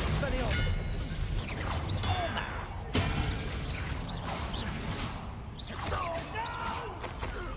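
Magic spells zap and crackle in bursts.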